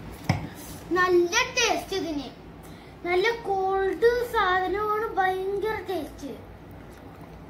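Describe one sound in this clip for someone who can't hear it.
A young boy speaks close by.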